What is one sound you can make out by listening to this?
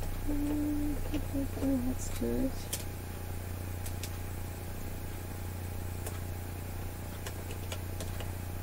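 Pins click faintly as they are pulled from fabric and set down.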